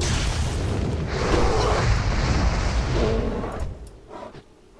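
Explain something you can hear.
A fiery spell crackles and roars in a fight.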